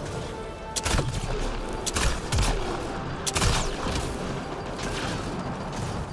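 Energy gunshots fire in sharp bursts.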